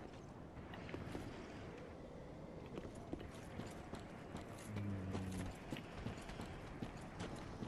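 Armoured footsteps crunch on stone and gravel.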